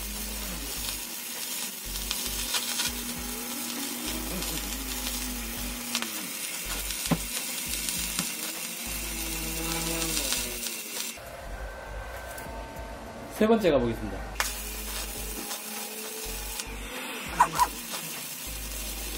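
An electric welding arc crackles and sizzles loudly.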